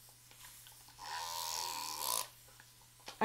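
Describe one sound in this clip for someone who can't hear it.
A spray can hisses.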